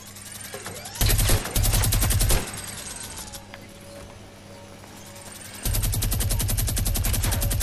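Wooden walls are built with rapid clattering knocks.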